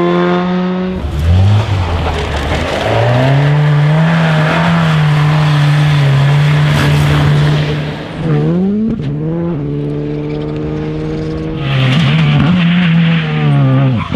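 Tyres crunch and scatter loose gravel.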